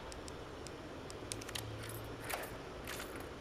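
A key turns in a door lock with a metallic click.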